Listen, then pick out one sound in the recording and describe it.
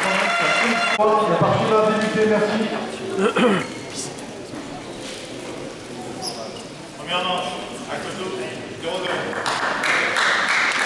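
A table tennis ball clicks against paddles and the table in a large echoing hall.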